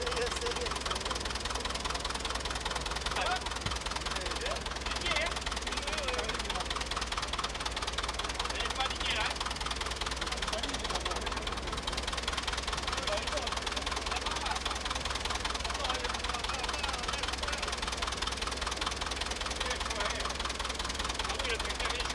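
Elderly men talk nearby outdoors.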